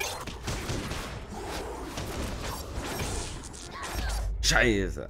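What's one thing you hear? Game combat effects crash and clatter.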